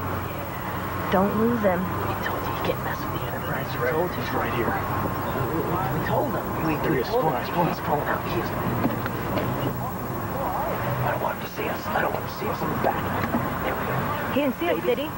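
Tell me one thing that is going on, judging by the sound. A man talks nearby, inside a car.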